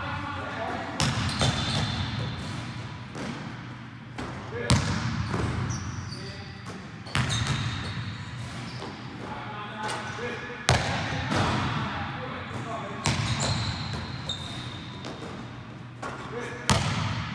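A basketball clangs off a hoop's rim and backboard.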